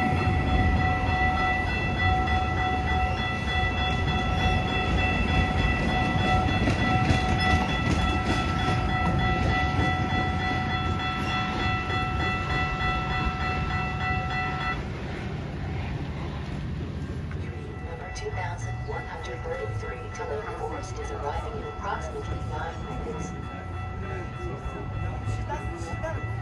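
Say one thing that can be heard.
A train's diesel engine idles with a deep, steady rumble close by.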